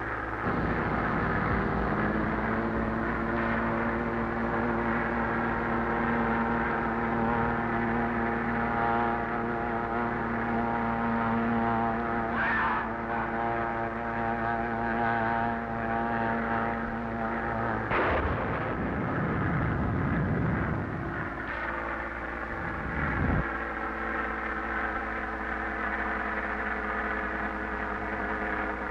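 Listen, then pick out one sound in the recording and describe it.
A propeller plane's engine drones steadily throughout.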